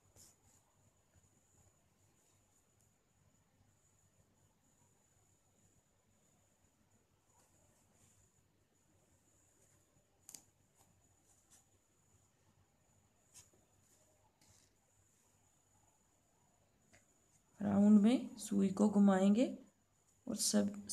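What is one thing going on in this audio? Yarn rustles softly as a hook pulls it through stitches.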